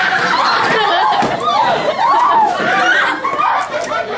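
A girl shouts and laughs loudly.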